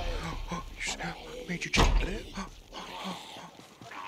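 A heavy blow lands with a dull thud.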